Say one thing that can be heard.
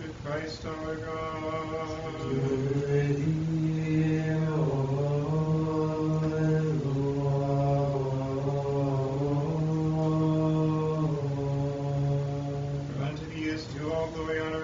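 A woman chants slowly in a steady, sustained voice.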